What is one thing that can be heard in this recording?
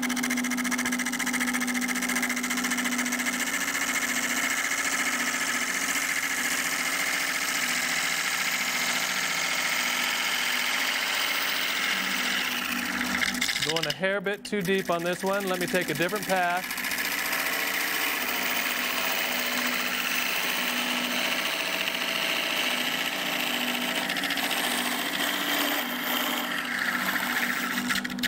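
A wood lathe whirs steadily.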